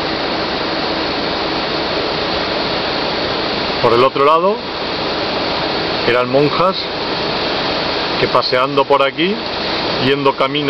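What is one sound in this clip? Wind blows steadily through trees outdoors.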